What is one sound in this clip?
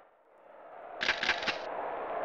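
A menu beeps as options are chosen.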